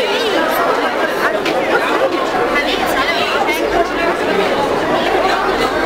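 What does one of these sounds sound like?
A woman talks loudly over the children.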